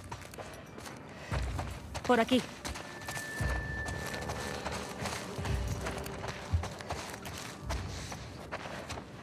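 Footsteps crunch over debris and dry leaves.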